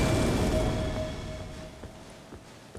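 A magical burst rings out with a shimmering tone and fades away.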